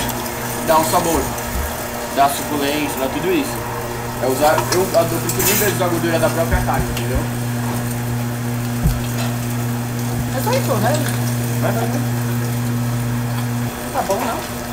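A meat grinder motor hums steadily.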